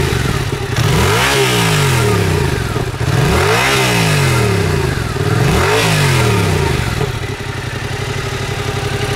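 A motorcycle engine idles close by with a deep rumble.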